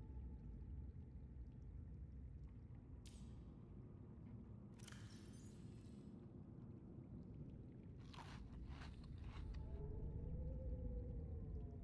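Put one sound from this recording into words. A low rumbling hum drones steadily.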